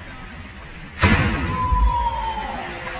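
A person plunges into deep water with a loud, sudden splash.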